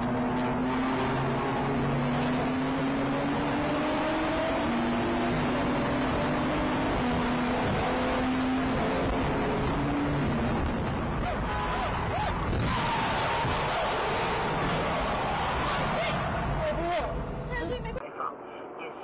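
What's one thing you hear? A car engine hums steadily while driving through an echoing tunnel.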